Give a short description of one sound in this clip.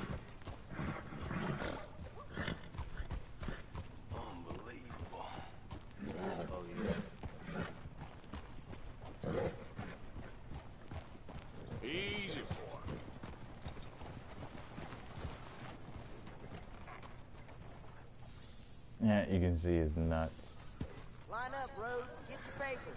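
Horse hooves clop slowly on a dirt road.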